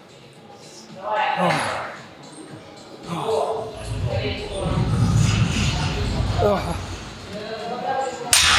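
A man breathes heavily after exertion.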